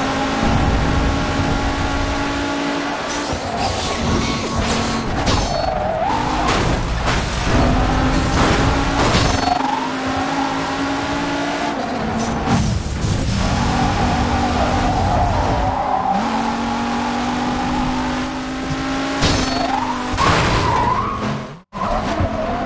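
A car engine roars and revs at high speed.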